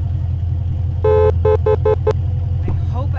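A car horn beeps several times in quick succession.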